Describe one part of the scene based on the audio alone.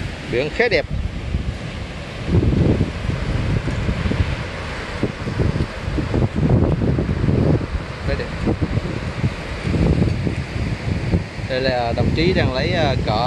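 Waves crash and wash over rocks.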